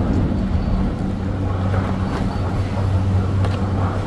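A chairlift seat knocks against the skiers as it scoops them up.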